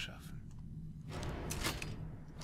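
Hands press a switch on a wall with a clunk.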